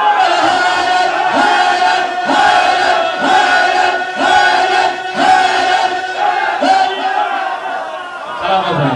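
A second man sings along into a microphone.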